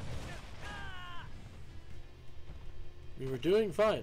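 Fighting effects clash and whoosh.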